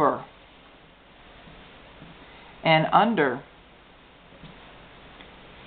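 Fabric strips rustle softly as hands braid them.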